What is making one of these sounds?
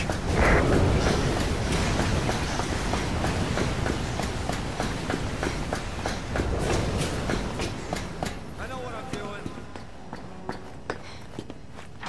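Footsteps clang quickly on a metal walkway.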